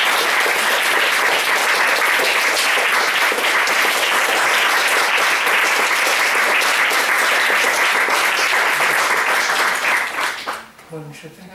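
A small group applauds in a room.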